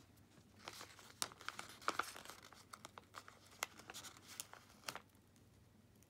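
A sticker peels off a glossy backing sheet.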